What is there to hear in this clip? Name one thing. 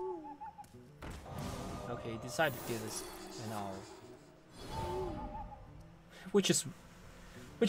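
A young man talks and laughs with animation into a microphone.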